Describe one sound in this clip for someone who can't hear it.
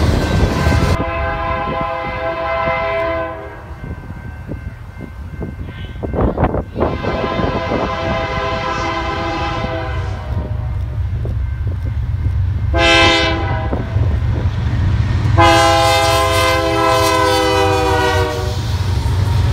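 A train horn blares in long blasts.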